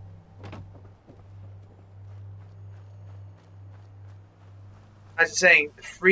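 Footsteps tread softly over wooden boards and dry ground.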